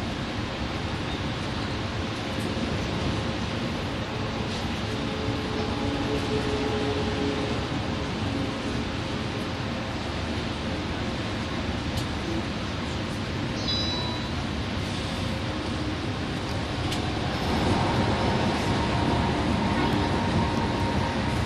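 A bus engine hums steadily while driving on a highway.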